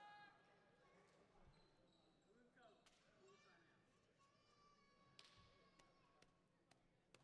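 Young men talk and call out in a large echoing gym.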